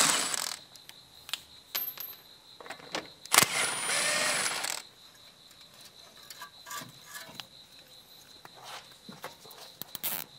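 Metal parts clink and knock.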